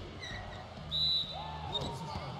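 A referee's whistle blows sharply once.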